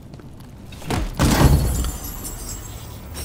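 Coins jingle as a chest bursts open.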